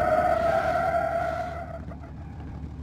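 Tyres screech loudly as a car skids.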